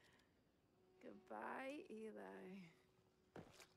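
A young woman speaks softly, close by.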